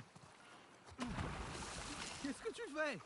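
Water splashes as someone jumps in.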